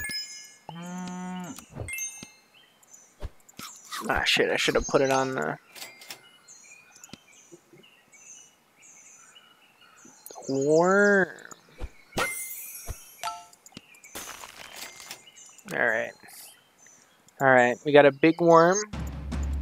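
Short cartoon animal cries squeak and chirp now and then.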